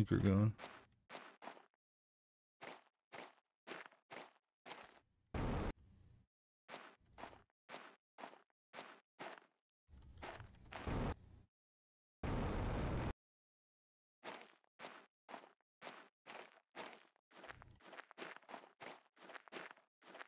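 Footsteps tread steadily on soft grassy ground.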